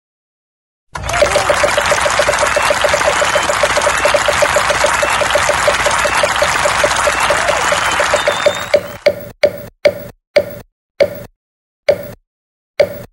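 A spinning prize wheel clicks rapidly, then the clicks slow down.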